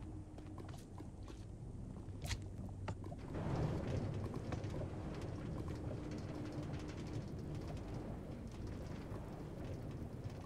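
A minecart rattles along rails.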